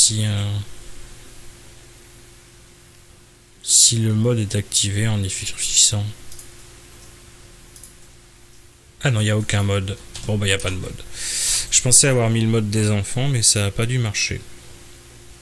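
A young man talks casually and with animation into a close microphone.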